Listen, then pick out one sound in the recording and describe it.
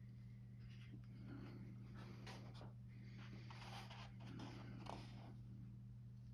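A book's stiff paper cover and pages rustle as the book is opened.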